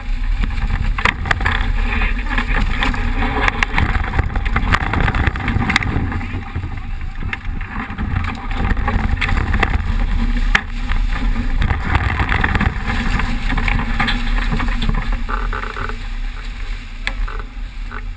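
Waves rush and splash against a boat's hull.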